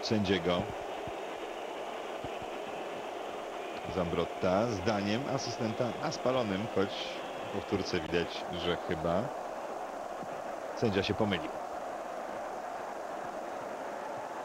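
A large crowd murmurs and chants steadily in a stadium.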